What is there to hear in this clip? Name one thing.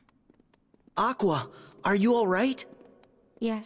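A young man asks a question with concern.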